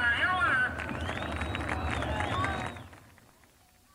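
A race car engine roars loudly as the car speeds past.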